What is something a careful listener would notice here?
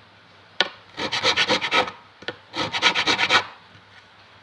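A file scrapes in short rapid strokes across a metal fret.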